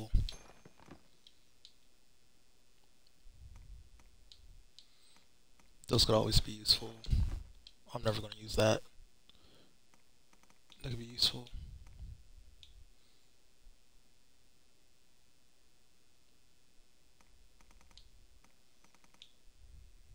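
Soft menu clicks tick as a selection cursor moves between items.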